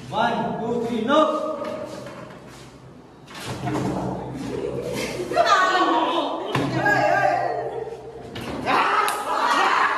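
Young men shout and cheer loudly nearby.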